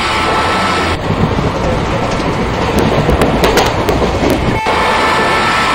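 A passing train roars by close and loud.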